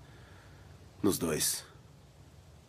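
A second man answers briefly in a quiet, strained voice.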